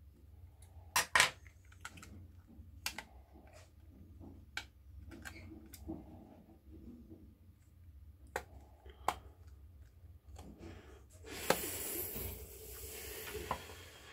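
Small metal tools click and tap against a phone.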